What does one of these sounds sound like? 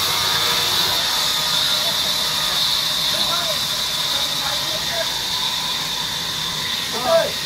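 A band saw cuts through a log with a loud, steady whine.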